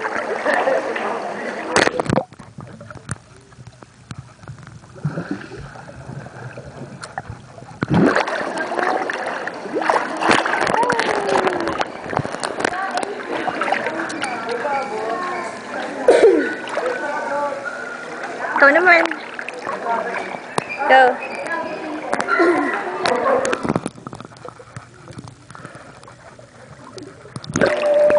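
Water splashes and sloshes close by.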